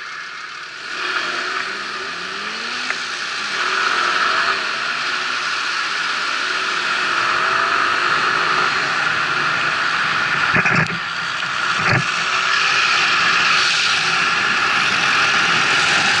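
Wind rushes loudly past as a vehicle picks up speed.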